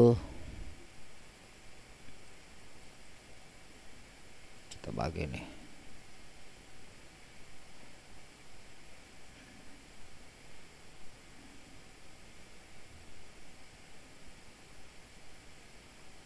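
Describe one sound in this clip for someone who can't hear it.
A computer mouse clicks and scrolls softly.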